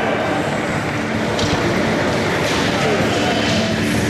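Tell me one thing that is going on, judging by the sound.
A heavy barbell clanks into its rack.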